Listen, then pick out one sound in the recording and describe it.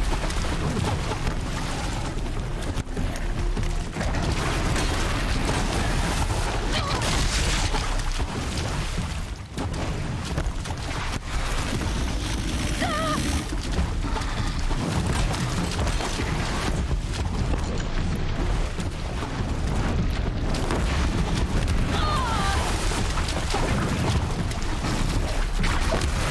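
A large machine creature stomps and clanks.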